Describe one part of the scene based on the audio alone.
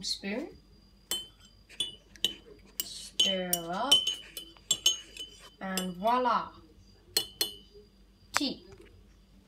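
A metal spoon clinks against a ceramic mug.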